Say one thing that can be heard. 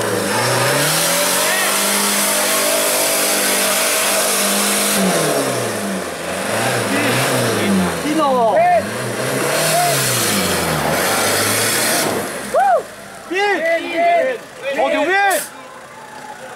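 An off-road 4x4 engine revs hard as it climbs a muddy bank.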